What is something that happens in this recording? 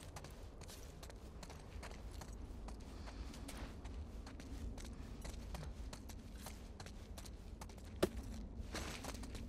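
Footsteps tap quickly on a hard tiled floor.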